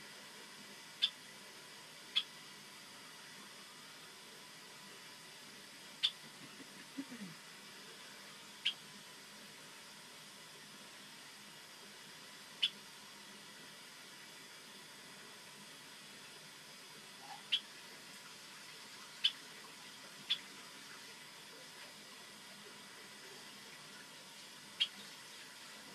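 A small bird chirps now and then in short, sharp calls nearby.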